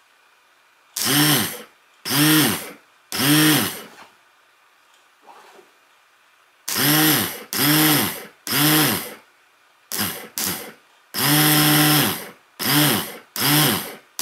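An electric motor whirs loudly in short repeated bursts.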